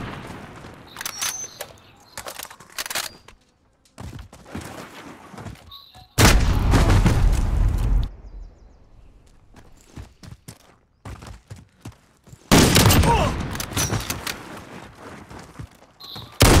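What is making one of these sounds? A rifle bolt clacks as it is worked.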